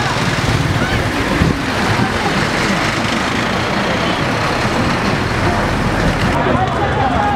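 Vehicle engines rumble as a convoy drives past.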